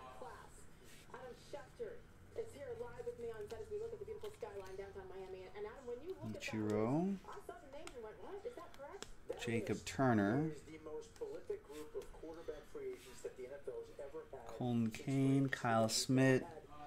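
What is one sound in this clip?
Trading cards rustle and flick against each other.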